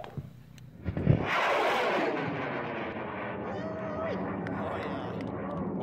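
A rocket motor ignites with a sudden roar that fades as the rocket climbs.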